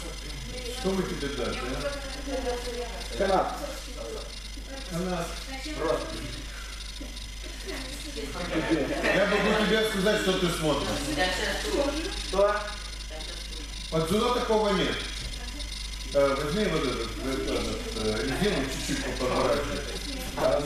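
A young man talks calmly close by, in a room with some echo.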